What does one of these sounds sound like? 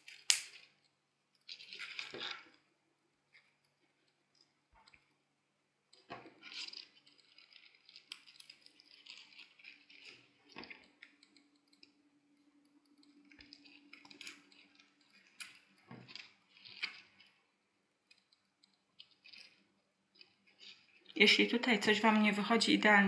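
Glittery paper strips rustle and crinkle between fingers.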